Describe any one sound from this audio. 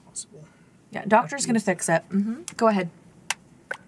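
A young woman speaks animatedly into a close microphone.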